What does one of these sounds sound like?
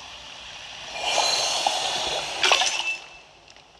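Liquid splashes as a cauldron is filled.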